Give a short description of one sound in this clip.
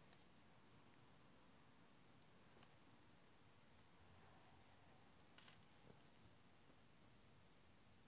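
A paintbrush swishes softly in a paint palette.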